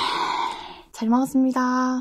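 A young woman speaks brightly, close to a microphone.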